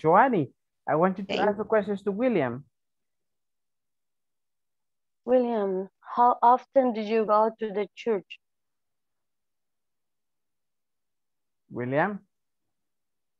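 A woman speaks calmly over an online call, in short phrases.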